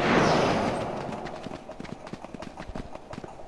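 Quick footsteps patter on the ground.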